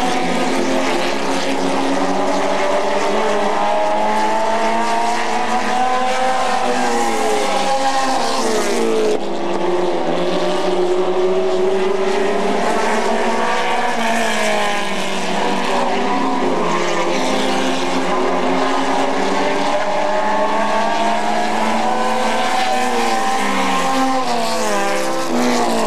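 Race car engines roar and whine loudly, rising and falling as cars speed past.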